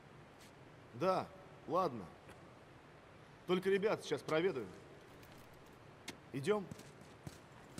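A second man answers calmly, close by.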